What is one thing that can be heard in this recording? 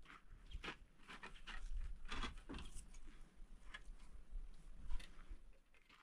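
Wooden boards clatter as they are shifted.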